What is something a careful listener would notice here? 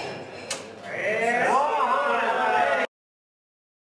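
A crowd cheers and shouts indoors.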